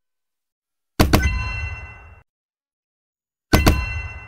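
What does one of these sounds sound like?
A game gunshot-like burst rings out with a ringing tail.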